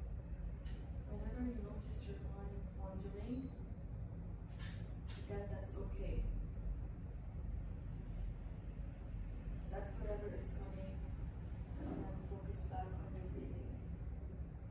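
A woman speaks slowly and calmly, pausing between phrases.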